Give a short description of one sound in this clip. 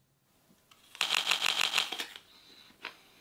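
A young man bites into a crisp apple with a loud crunch.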